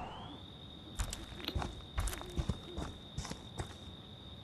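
Heavy footsteps crunch on a dirt path.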